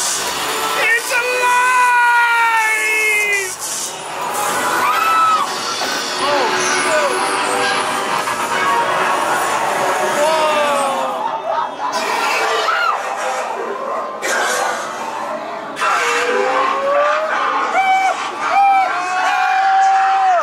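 Animated haunted-house figures let out eerie wails and shrieks.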